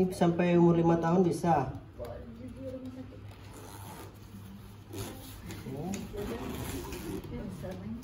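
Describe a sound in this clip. A plastic frame clicks as it is handled.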